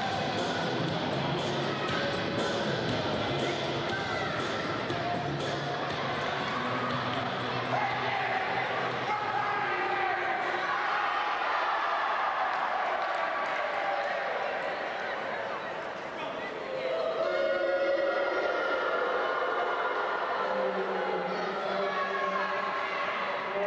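Men shout and talk loudly in a large echoing hall.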